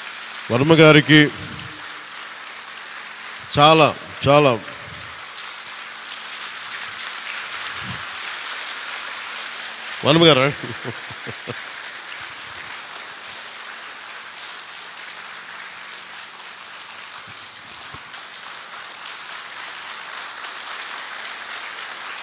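A crowd murmurs and cheers in the background.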